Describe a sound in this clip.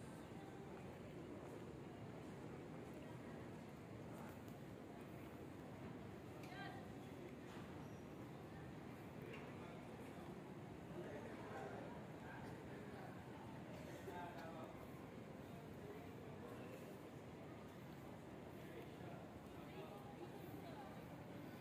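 Voices of a crowd murmur in a large echoing hall.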